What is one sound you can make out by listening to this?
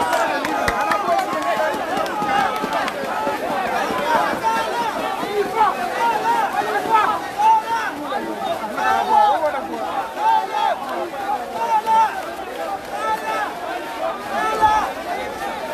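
A large crowd of men and women shouts and chants loudly outdoors.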